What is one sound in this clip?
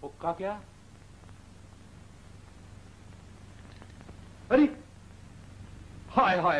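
An elderly man speaks dramatically in short bursts.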